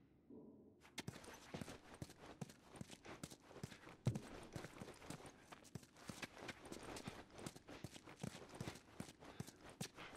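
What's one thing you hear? Footsteps tread on a hard floor indoors.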